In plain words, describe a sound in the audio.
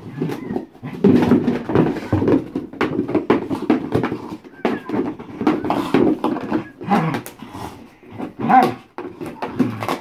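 A dog's claws scratch and scrape at a cardboard box.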